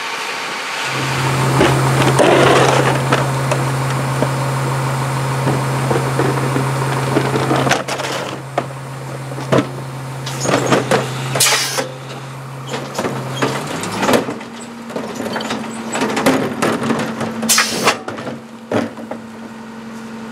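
A rear-loading garbage truck's hydraulics whine under load.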